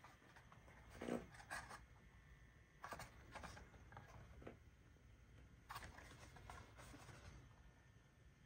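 A plastic cassette case clicks and rattles as a hand handles it.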